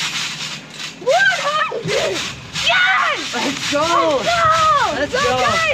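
Young boys shout and laugh excitedly nearby.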